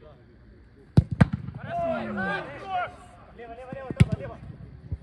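A ball is kicked with a hard thump.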